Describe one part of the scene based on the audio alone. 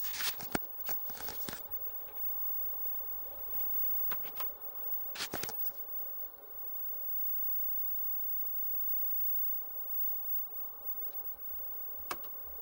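An old monitor hums steadily.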